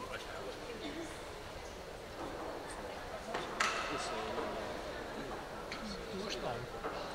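Skate blades scrape lightly on ice in a large echoing rink.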